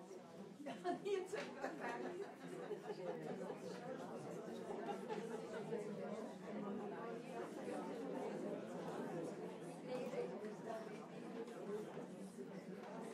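A large crowd of men and women chatters in a steady murmur indoors.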